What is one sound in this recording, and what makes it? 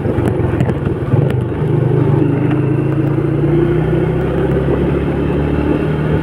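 A scooter engine hums steadily close by.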